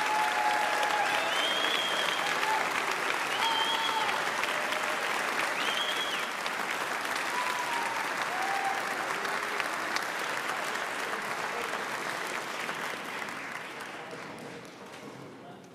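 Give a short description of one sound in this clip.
An audience applauds and cheers in a large hall, fading toward the end.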